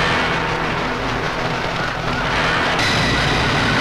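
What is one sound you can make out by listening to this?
A crowd of men shouts in panic.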